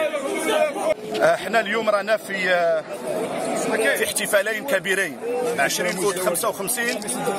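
A middle-aged man speaks with animation close to the microphone.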